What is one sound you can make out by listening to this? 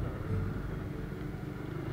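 A motorbike engine hums nearby.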